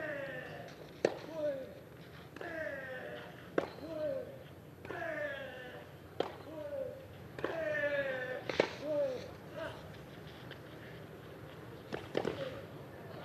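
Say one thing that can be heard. Tennis balls are struck hard with rackets in a steady rally.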